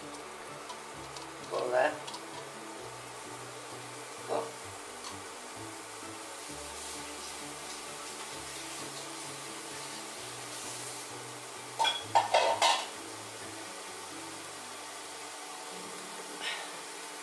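Rice sizzles softly in a hot pot.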